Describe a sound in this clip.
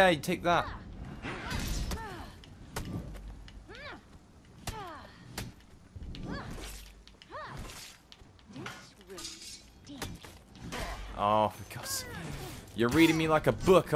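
Metal blades clash and clang in a sword fight.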